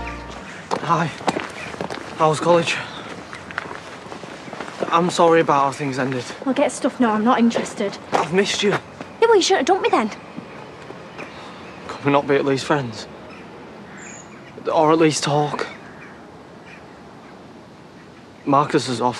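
A young woman speaks with emotion close by.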